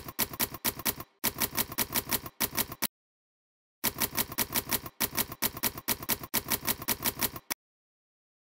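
Typewriter keys clack in quick bursts.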